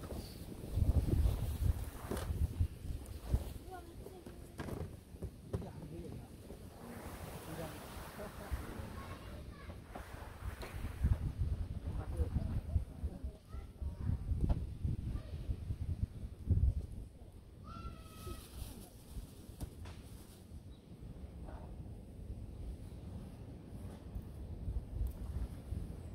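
Wind blows outdoors in low gusts.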